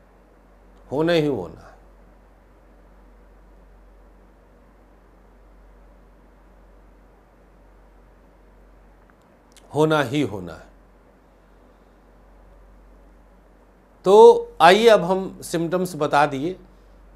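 A middle-aged man speaks calmly into a clip-on microphone, in short phrases with long pauses.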